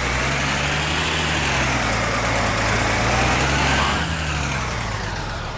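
A car engine hums and revs up and down as the car drives along.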